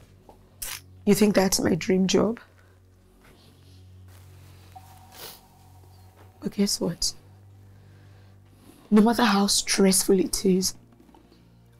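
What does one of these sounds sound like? A young woman speaks in a distressed, pleading voice close by.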